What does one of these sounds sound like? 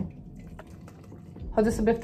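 Water pours from a kettle into a mug.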